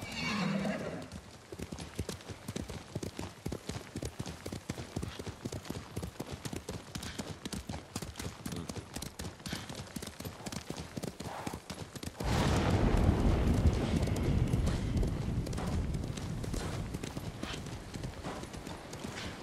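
A horse gallops with rapid hoofbeats on soft ground.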